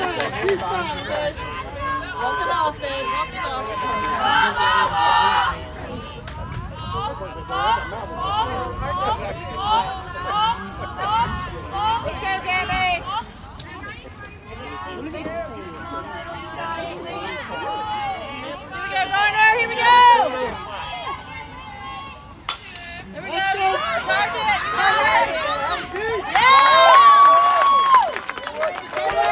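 Young women shout and cheer from a distance.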